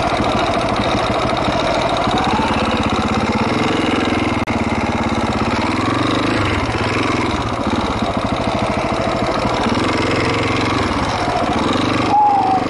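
A dirt bike engine revs and sputters up close, rising and falling in pitch.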